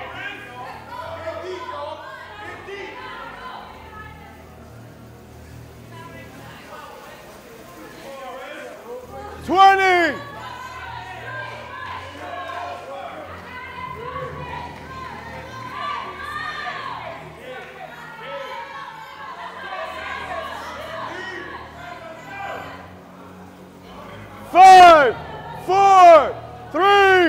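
A crowd cheers and shouts loudly nearby.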